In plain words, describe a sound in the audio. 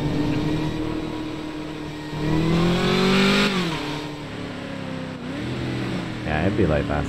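A car engine roars, rising in pitch as it speeds up and dropping as it shifts gear.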